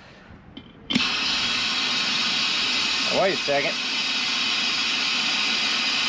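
Compressed air hisses loudly and steadily from a hose into a tyre.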